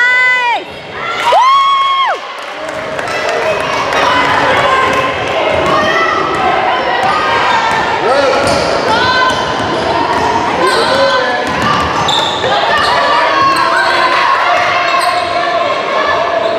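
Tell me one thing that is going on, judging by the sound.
Teenage girls call out to each other in a large echoing gym.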